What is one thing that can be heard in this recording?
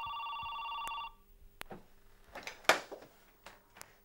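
A telephone handset clatters as it is picked up.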